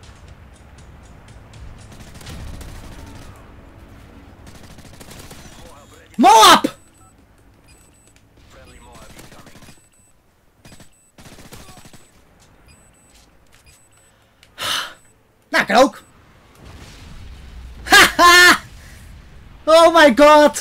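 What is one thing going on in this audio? A young man talks and shouts with excitement into a close microphone.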